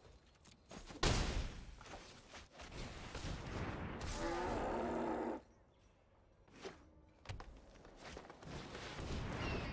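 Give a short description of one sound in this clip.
Fantasy game sound effects whoosh and chime as cards are played.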